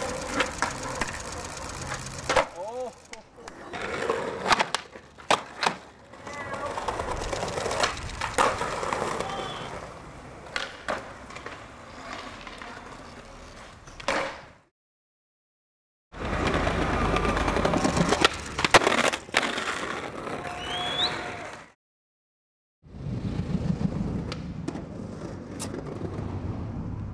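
Skateboard wheels roll and rumble on pavement.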